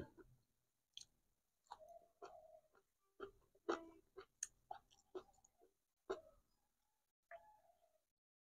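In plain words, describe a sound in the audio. A man chews food close to the microphone.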